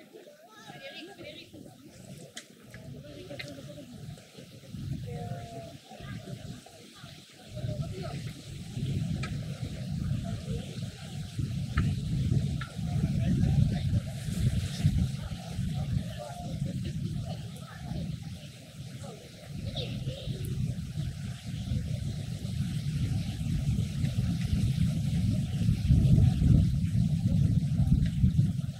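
A crowd of people murmurs and chatters nearby outdoors.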